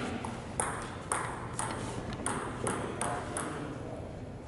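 A ping pong ball clicks back and forth on paddles and a table in a quick rally.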